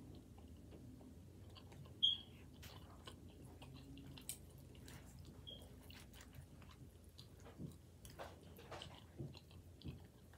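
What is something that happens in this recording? A woman chews food with soft, wet mouth sounds close to a microphone.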